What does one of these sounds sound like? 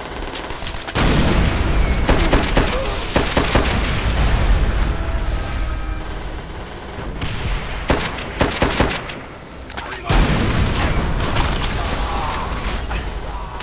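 Explosions rumble deeply nearby.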